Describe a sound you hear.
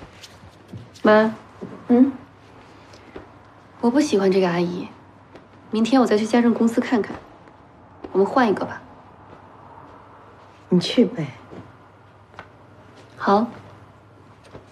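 A middle-aged woman speaks calmly in short phrases nearby.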